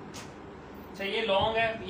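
A woman speaks briefly close by.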